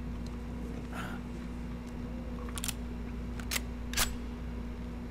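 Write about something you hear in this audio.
A gun clicks sharply as it is handled.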